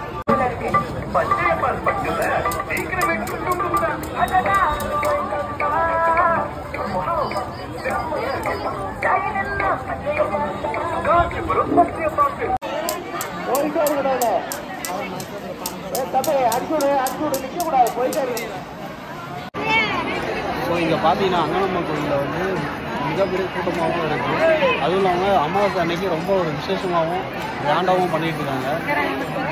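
A crowd of people chatters loudly outdoors.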